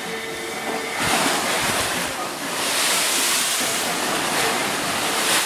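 Spray crashes loudly as the bow cuts through a large wave.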